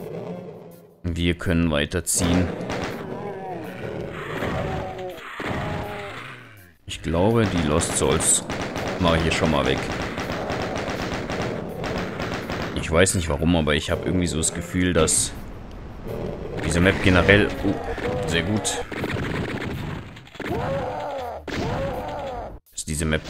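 A heavy gun fires rapid bursts of loud shots.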